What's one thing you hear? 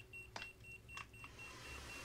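A small fire crackles.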